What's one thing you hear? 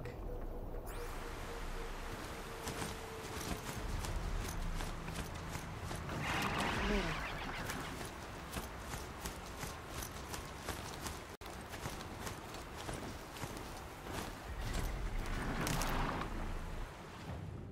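A mechanical creature's metal feet clank and thud as it runs through undergrowth.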